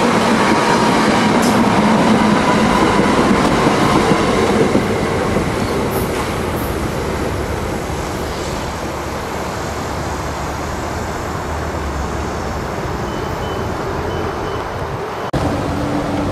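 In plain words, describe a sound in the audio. An electric train rumbles past close by on the rails and fades into the distance.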